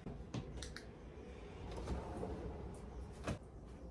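A wardrobe drawer slides open.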